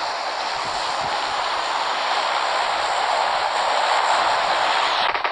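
Grass rustles steadily.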